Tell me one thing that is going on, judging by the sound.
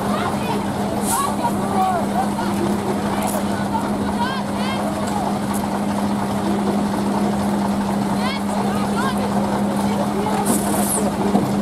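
A crowd of men and women shouts and clamours close by.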